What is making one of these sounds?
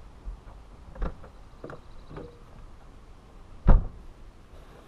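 A camper van door opens and bangs shut.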